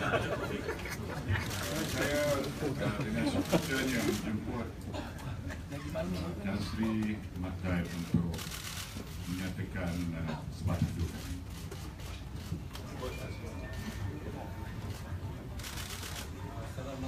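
A crowd of people talks and murmurs in a room.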